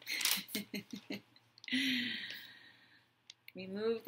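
A woman laughs softly.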